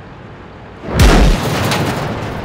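A tank gun fires with a loud boom.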